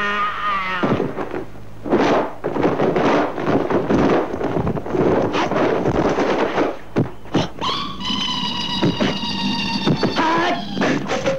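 Bodies thud and swish in a fast fight.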